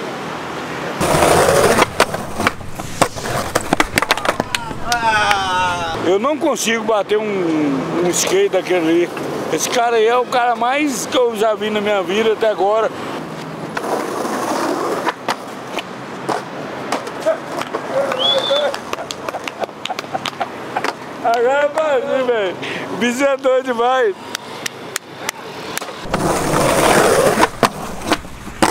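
Skateboard wheels roll loudly over rough concrete.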